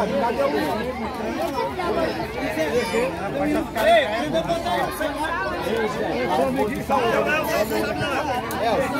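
A crowd of women and men chatter close by, many voices overlapping outdoors.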